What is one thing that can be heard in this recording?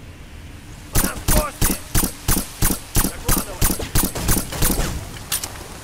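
A silenced pistol fires a rapid series of muffled shots.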